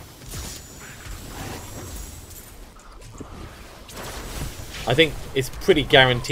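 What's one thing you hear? Magic spells crackle and whoosh in a fast fight.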